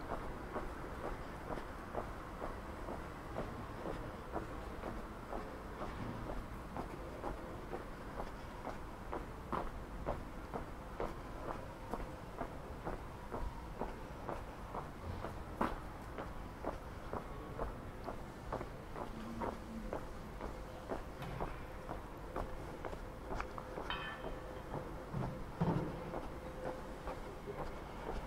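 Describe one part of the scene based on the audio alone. Footsteps tap steadily on stone paving outdoors.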